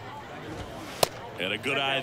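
A ball pops into a catcher's mitt.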